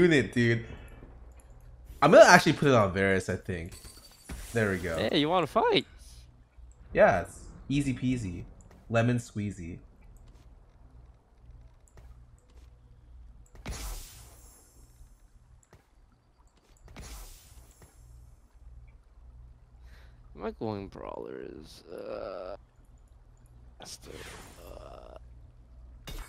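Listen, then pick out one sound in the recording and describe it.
A young man talks with animation close to a microphone, in bursts with pauses.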